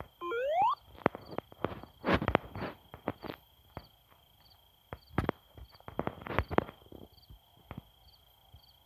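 Quick game footsteps patter as a character runs.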